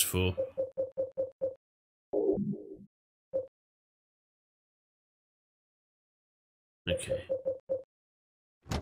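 Short electronic menu beeps sound in quick succession.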